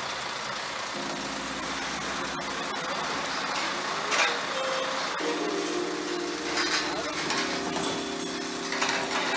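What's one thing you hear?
A truck engine rumbles as it drives past.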